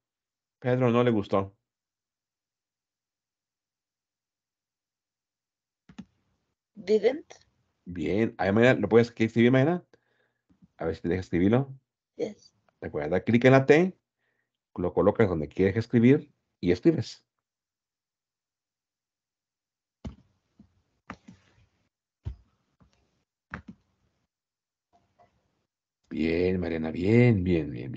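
A man speaks calmly through an online call, in bursts with pauses.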